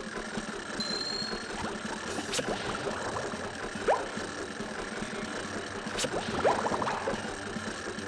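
Game sound effects chime and pop.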